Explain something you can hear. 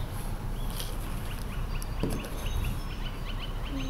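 A small glass bottle is set down on a table with a soft knock.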